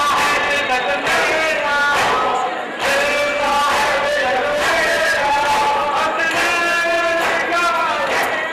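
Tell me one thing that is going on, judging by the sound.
A hand slaps rhythmically against a chest.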